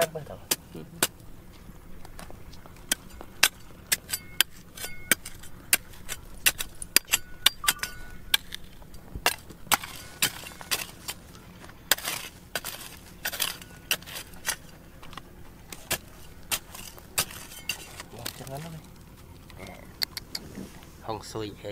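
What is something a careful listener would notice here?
A small metal trowel scrapes and chips at hard, stony ground in short, sharp strokes.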